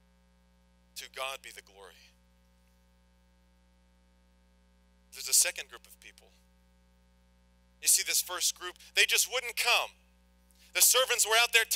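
A young man speaks calmly into a microphone, pausing between phrases.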